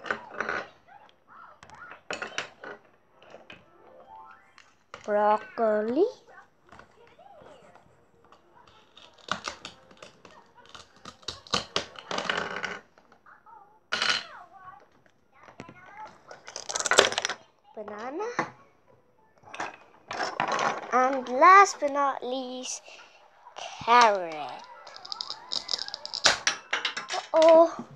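Plastic toy pieces knock and clatter on a wooden table.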